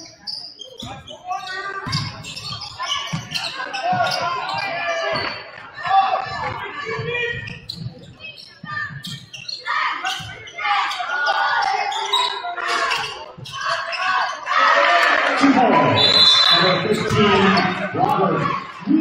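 A crowd of spectators cheers and shouts.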